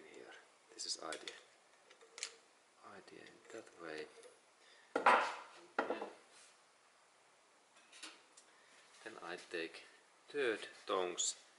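Metal tools click and scrape against a metal part.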